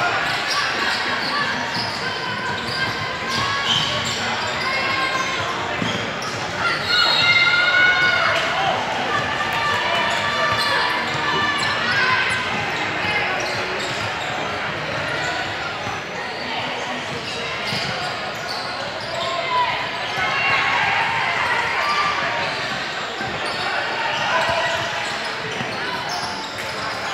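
Teenage boys shout and call out to each other in a large, echoing hall.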